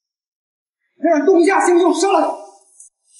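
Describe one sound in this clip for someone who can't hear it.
A man shouts a threat.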